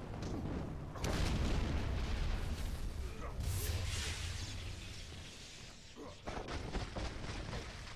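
Loud booming blasts of magic erupt.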